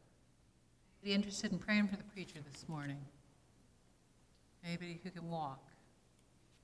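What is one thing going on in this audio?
An elderly woman speaks calmly and slowly into a microphone.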